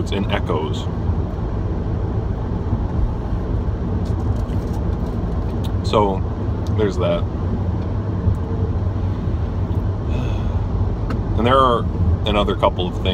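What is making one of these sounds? A car engine hums steadily with road rumble inside the car.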